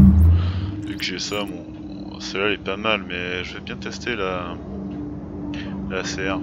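A young man talks calmly into a microphone, close by.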